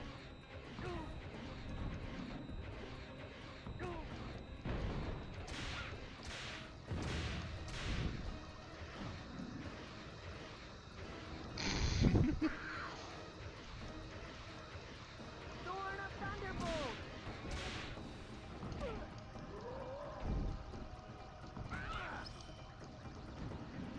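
Cartoonish blasts and zaps go off again and again.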